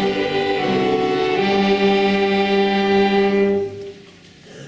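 Saxophones play a sustained chord and stop.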